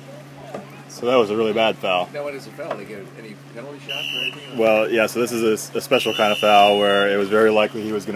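Young men shout to each other across the water.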